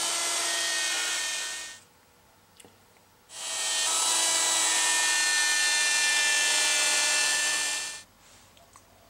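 An electric router whines loudly as it cuts into wood.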